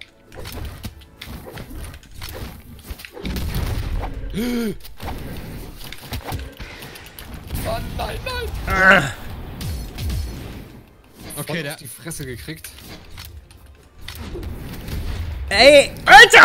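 Video game fighters' hits and whooshes sound in quick bursts.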